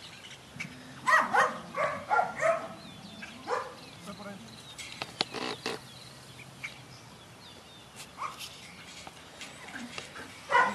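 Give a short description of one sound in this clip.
A man calls out commands to a dog outdoors, at a distance.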